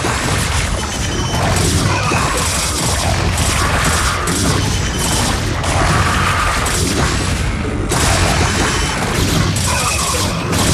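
Gunfire and laser blasts crackle in a busy game battle.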